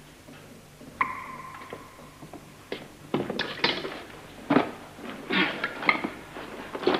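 An elderly man speaks nearby.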